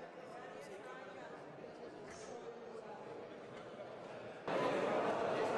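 A crowd of men and women murmurs in a large echoing hall.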